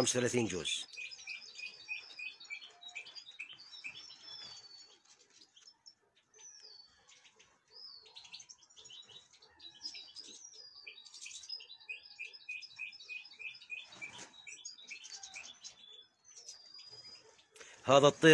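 Small birds chirp and twitter close by.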